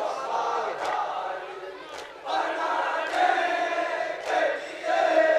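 A young man chants loudly through a microphone and loudspeakers.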